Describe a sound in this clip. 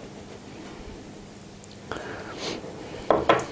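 A metal spoon clinks against a glass jar.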